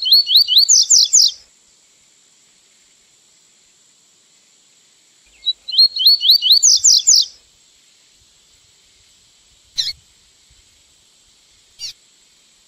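A small songbird sings in quick bursts of rising, whistled notes.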